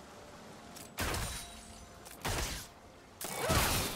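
Spell effects burst and crackle in a fight.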